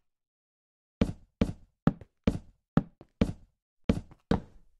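Wooden blocks are set in place with quick, short knocks.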